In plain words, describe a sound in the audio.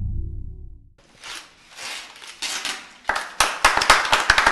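A small crowd claps and applauds.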